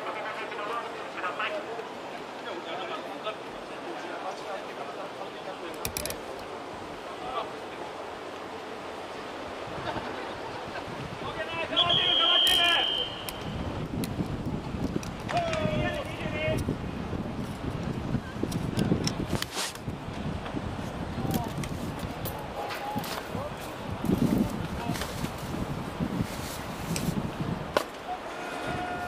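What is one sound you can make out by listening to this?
Players and people on the sideline call out and chatter in the distance outdoors.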